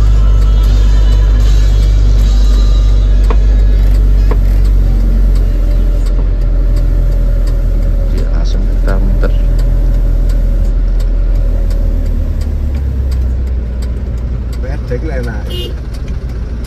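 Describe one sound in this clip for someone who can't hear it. A car engine hums steadily from inside the cab.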